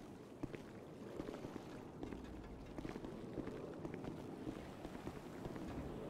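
Footsteps tap on a hard metal floor.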